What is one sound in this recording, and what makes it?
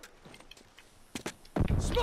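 A heavy blow lands with a loud thud.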